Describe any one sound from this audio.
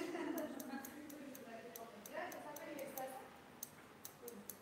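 Scissors snip quickly through a beard.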